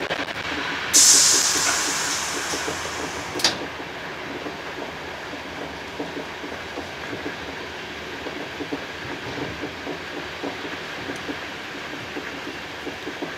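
A train rumbles along the tracks with steady wheel clatter, heard from inside a carriage.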